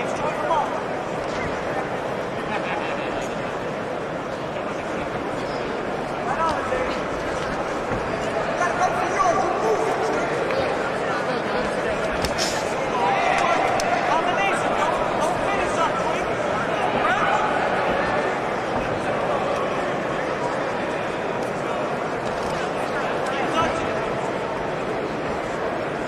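A crowd murmurs and shouts throughout, heard in a large echoing hall.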